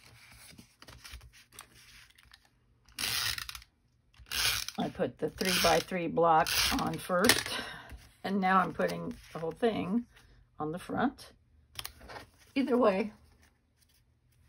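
Hands shuffle and slide sheets of card stock.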